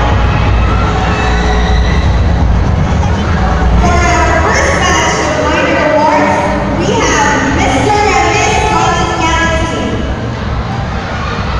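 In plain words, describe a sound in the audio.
Loud music plays over loudspeakers in a large hall.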